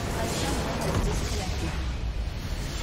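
A loud video game explosion booms.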